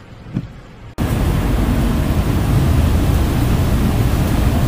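Floodwater rushes and roars loudly.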